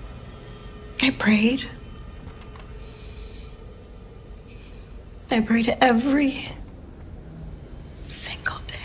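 A woman speaks quietly close by.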